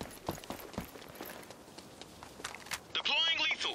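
Bullets smack into stone.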